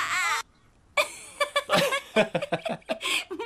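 A young man laughs and talks cheerfully.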